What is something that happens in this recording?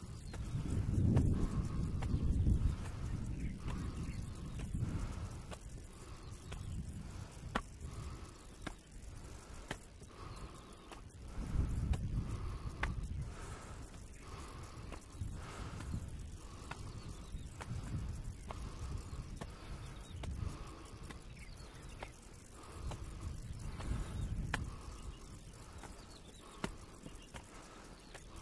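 Footsteps climb stone steps at a steady pace.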